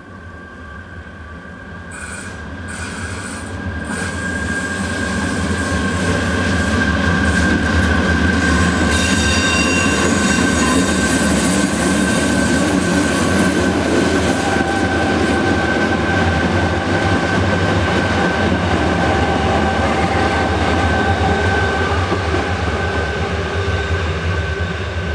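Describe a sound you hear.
An electric train's motor whines steadily as it passes.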